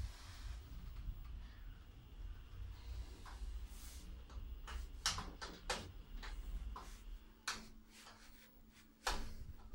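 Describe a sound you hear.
An elevator motor hums low and steady.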